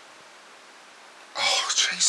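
A man drinks from a bottle.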